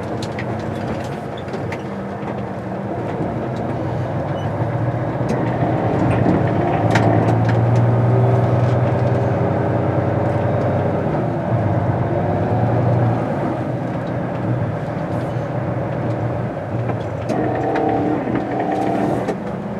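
A vehicle's engine hums from inside while driving.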